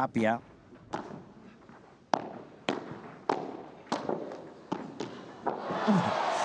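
Padel rackets strike a ball in a quick rally.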